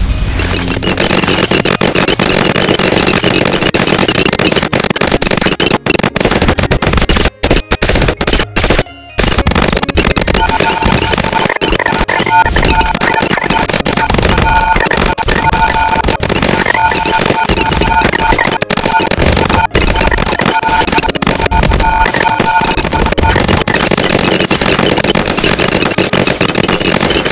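Cartoon game effects pop and zap rapidly and steadily.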